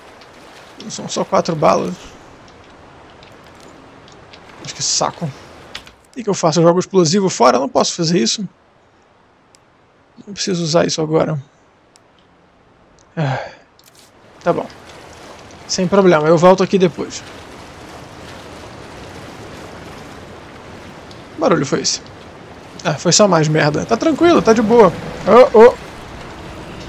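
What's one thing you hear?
Water splashes as footsteps wade through it.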